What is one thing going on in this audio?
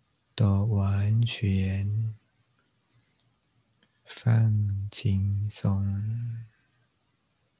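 A man speaks calmly and slowly, close to a microphone, with long pauses.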